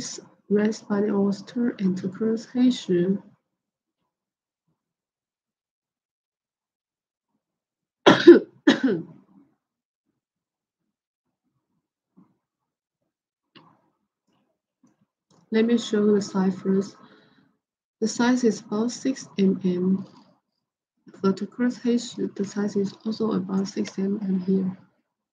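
A young woman speaks softly and close to a microphone, in short bursts with pauses.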